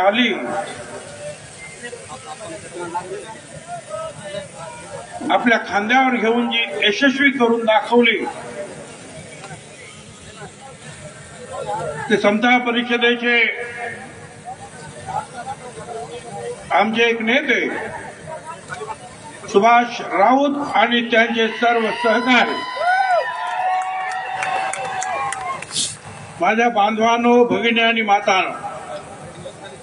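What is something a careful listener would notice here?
An elderly man speaks forcefully through a loudspeaker, echoing outdoors.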